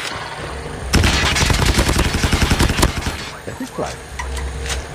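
Automatic gunfire rattles in a video game.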